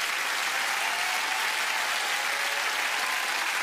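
A studio audience laughs loudly.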